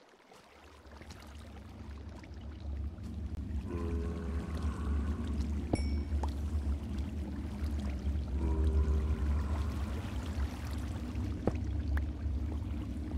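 Water flows and splashes steadily.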